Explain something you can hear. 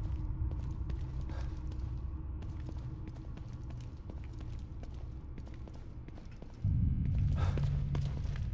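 A low, droning hum fills a large echoing room.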